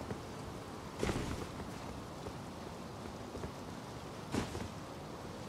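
A heavy thud lands on stone.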